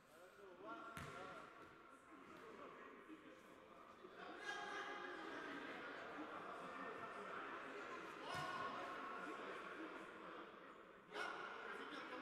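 A ball is kicked with a sharp thud.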